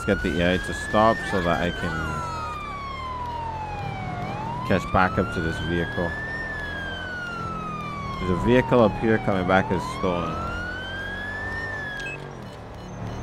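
A police siren wails, rising and falling slowly.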